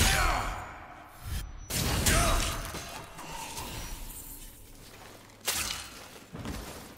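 Metal blades clash and strike with sharp ringing impacts.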